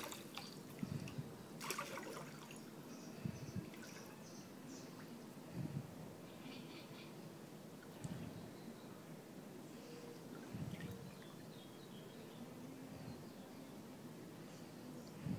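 Water sloshes and splashes gently.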